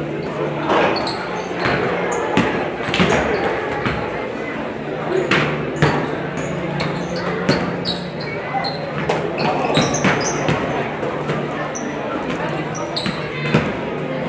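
A crowd murmurs in the echoing stands.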